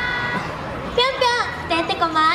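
A young woman speaks animatedly into a microphone over a loudspeaker.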